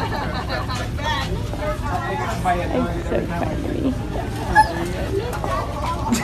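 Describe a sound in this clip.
Adults talk among themselves in a large indoor hall.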